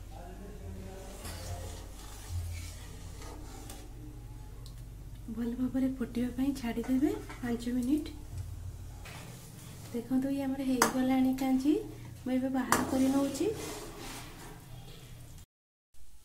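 A metal spatula scrapes and stirs a pan of liquid.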